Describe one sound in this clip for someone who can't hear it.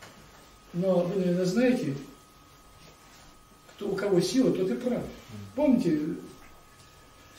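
An elderly man speaks with animation, close by, in pauses.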